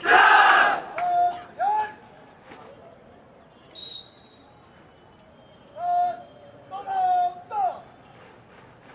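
A man shouts drill commands loudly outdoors.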